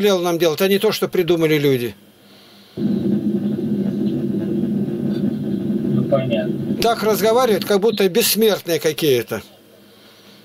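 An elderly man speaks with animation over an online call.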